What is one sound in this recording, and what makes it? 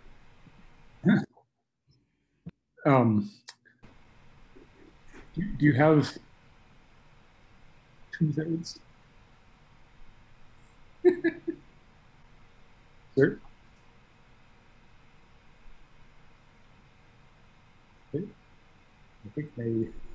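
A middle-aged man speaks calmly over an online call, in short bursts.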